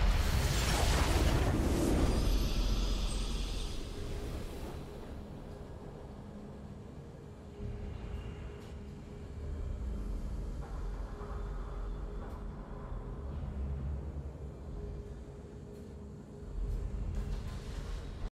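A triumphant musical fanfare plays and rings on.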